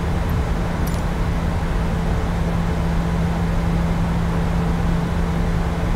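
A jet engine roars steadily, heard from inside the cabin.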